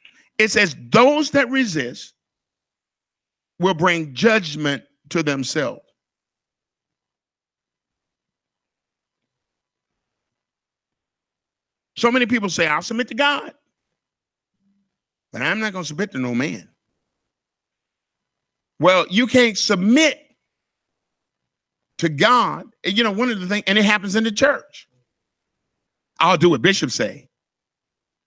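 A man speaks with animation into a microphone, in bursts with long pauses.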